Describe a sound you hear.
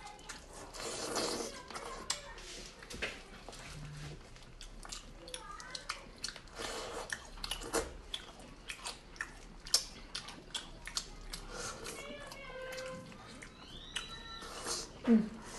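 A young woman chews and slurps meat close to a microphone.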